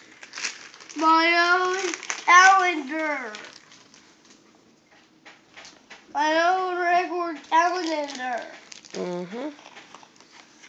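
A young child talks excitedly close by.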